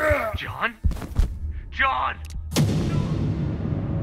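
A body falls and hits the ground with a heavy thud.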